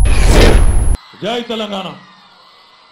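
A man speaks calmly through a microphone and loudspeakers.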